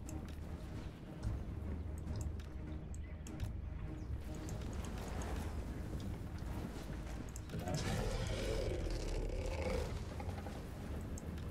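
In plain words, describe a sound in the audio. Arrows whoosh through the air in volleys.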